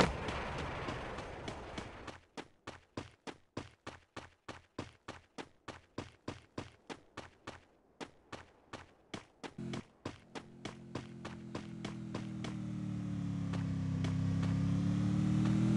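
Footsteps fall quickly and rhythmically on grass.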